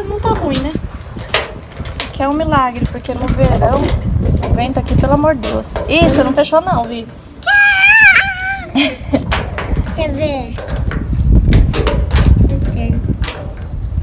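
Keys jingle and a key scrapes in a door lock.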